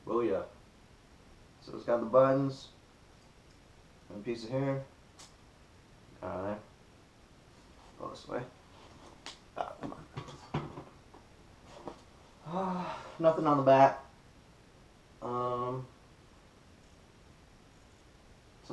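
Fabric rustles as a shirt is unfolded and shaken.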